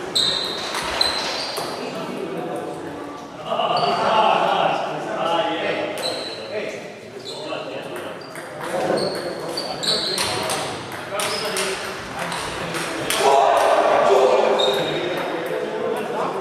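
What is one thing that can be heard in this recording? A table tennis ball clicks back and forth on paddles and a table in an echoing hall.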